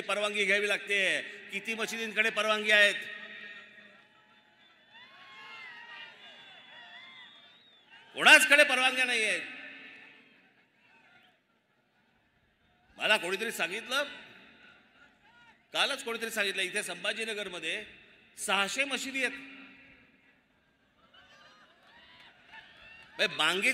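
A man speaks forcefully into a microphone over loudspeakers, echoing outdoors.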